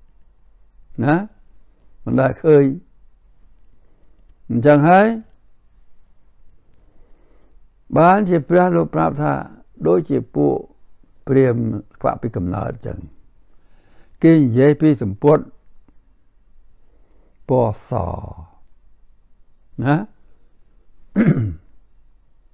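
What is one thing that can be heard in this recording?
An elderly man speaks slowly and calmly, close to a microphone, with long pauses.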